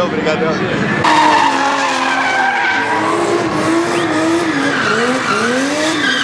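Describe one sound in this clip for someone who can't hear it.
A car engine revs hard and roars.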